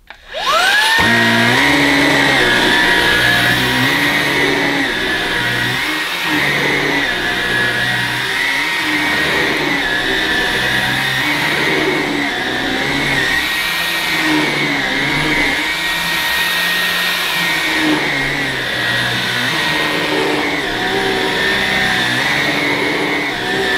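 A vacuum cleaner brush rolls back and forth over carpet.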